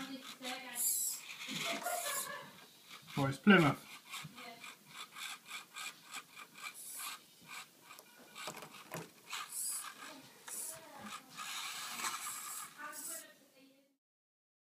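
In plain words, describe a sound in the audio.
Plastic wheels clatter and knock against toy cars.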